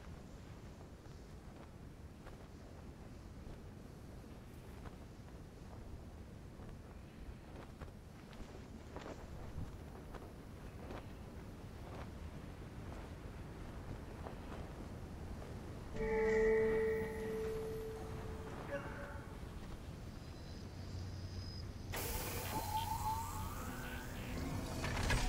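Wind blows steadily across open sand.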